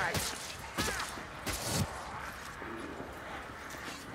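A pistol fires a few loud shots.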